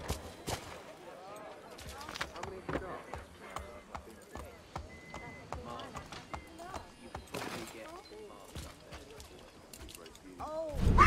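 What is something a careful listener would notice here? Horse hooves clop steadily on hard ground.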